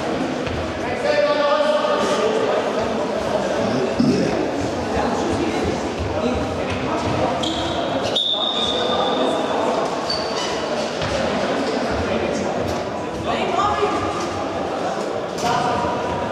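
Boys shout and call out across the hall.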